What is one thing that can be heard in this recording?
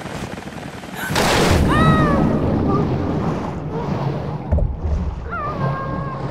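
Water churns and rumbles underwater.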